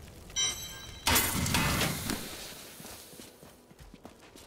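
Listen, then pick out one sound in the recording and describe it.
A magic portal whooshes loudly and fades.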